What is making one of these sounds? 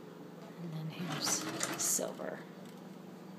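Metal cutlery clinks in a drawer.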